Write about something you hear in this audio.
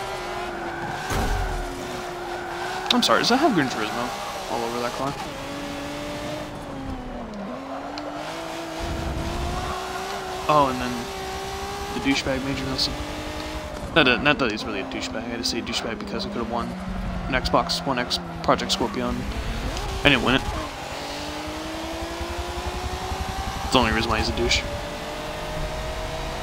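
A racing car engine roars, revving up and down through gear changes.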